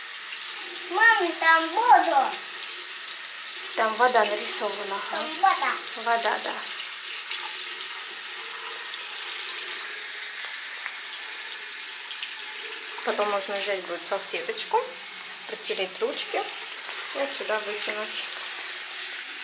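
A young child talks in short bursts close by.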